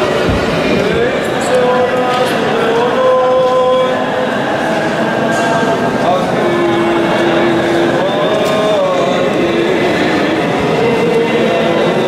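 A man sings a solo chant in a large echoing hall.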